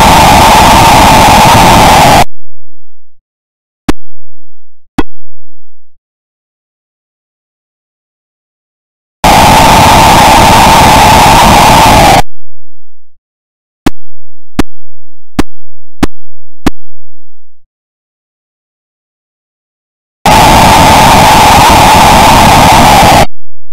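A loud, harsh electronic hiss bursts out after a basket is scored.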